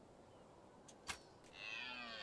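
A bowstring twangs sharply as an arrow is loosed.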